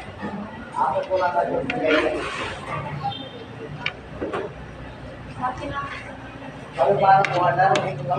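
A metal spoon scrapes and clinks on a plate.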